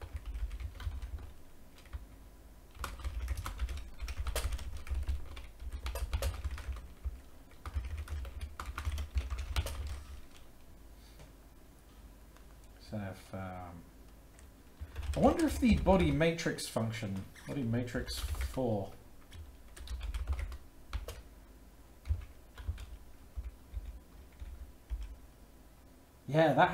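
Keys clatter on a keyboard.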